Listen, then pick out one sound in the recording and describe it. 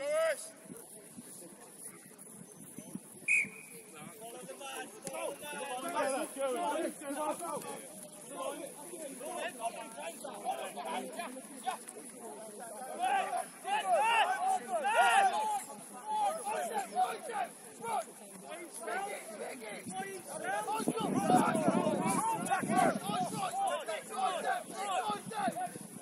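Young players shout and call to each other across an open field, heard from a distance.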